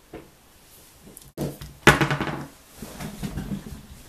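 A metal revolver is set down on a hard surface with a knock.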